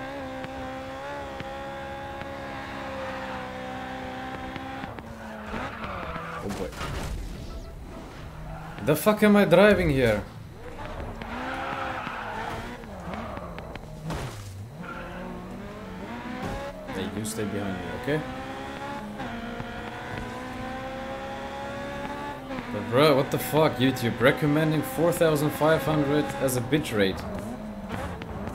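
A racing car engine revs high and shifts pitch as it speeds along.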